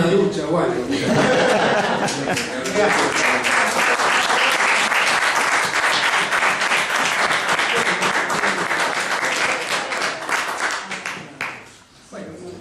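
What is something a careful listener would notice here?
An audience applauds loudly and cheers.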